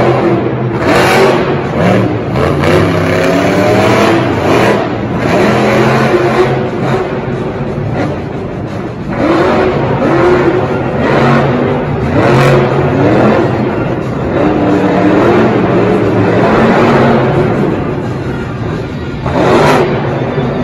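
A monster truck lands hard with a thud.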